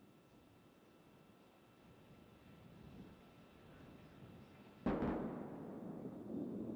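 A rocket engine roars and grows louder, then bursts into a loud rumble.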